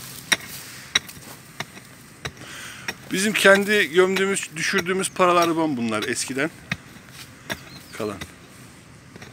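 A pickaxe strikes into dry, stony dirt again and again.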